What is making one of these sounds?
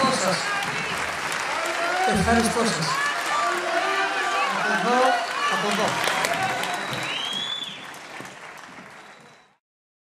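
A crowd whistles and shouts.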